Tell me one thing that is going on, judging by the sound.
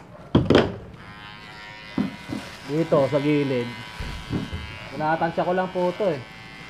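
An electric hair clipper buzzes steadily.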